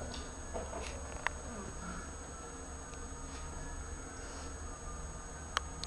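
A dog and a cat scuffle softly on a hard floor.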